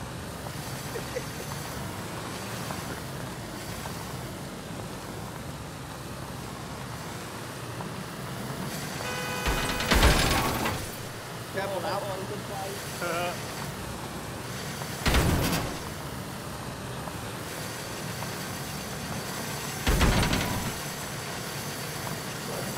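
A small car engine hums steadily as the car drives.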